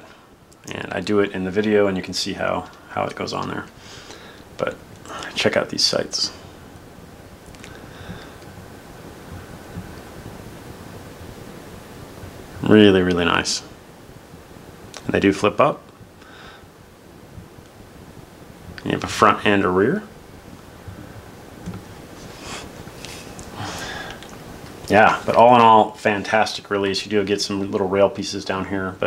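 Small plastic parts click softly as they are handled.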